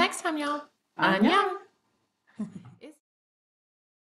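A second woman talks cheerfully close to a microphone.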